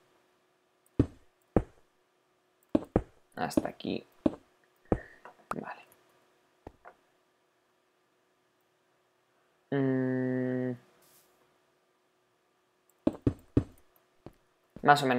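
Stone blocks are set down one after another with short dull knocks.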